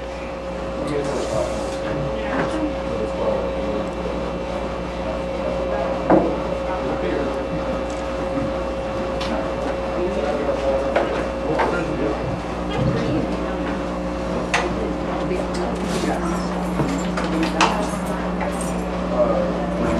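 A live band plays loudly.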